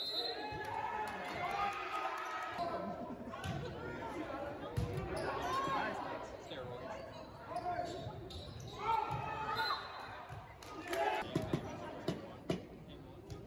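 Young players shout and call out to each other in a large echoing gym.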